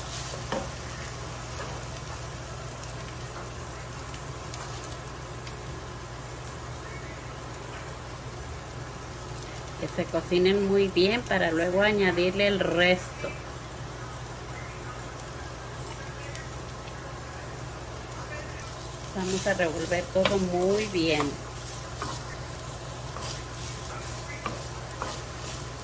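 A wooden spoon scrapes and stirs food in a frying pan.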